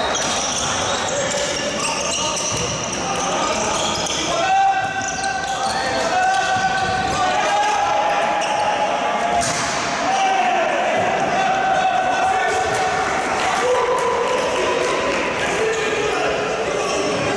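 Sneakers squeak and thud on a sports court floor in a large echoing hall.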